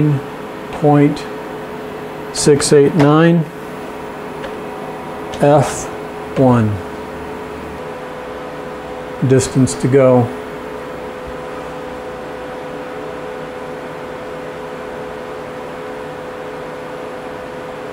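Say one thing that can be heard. A machine motor hums steadily.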